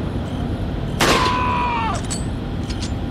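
A rifle fires a single loud shot that rings off.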